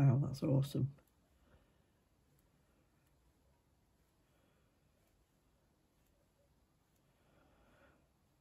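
A small brush softly dabs and scrapes at thick paint.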